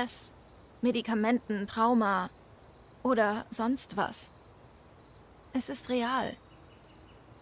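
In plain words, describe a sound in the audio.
A young woman speaks earnestly and quietly.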